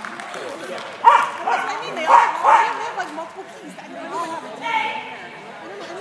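A woman calls out loudly to a dog in a large echoing hall.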